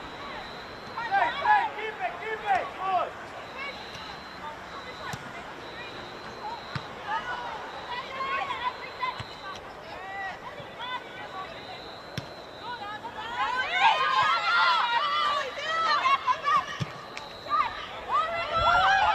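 Women players shout and call out across an outdoor field.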